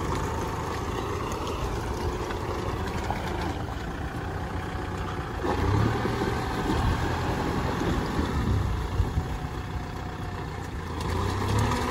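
Plough discs churn and splash through wet mud.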